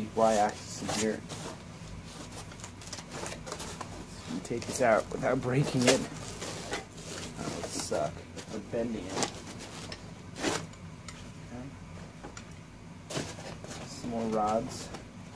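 Foam packing squeaks and rustles as parts are lifted out.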